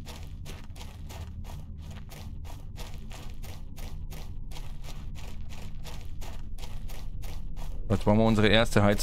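Footsteps crunch steadily on dry ground.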